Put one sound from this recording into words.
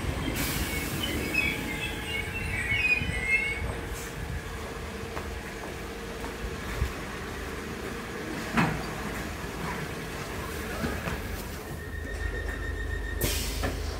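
A train's engine hums steadily nearby.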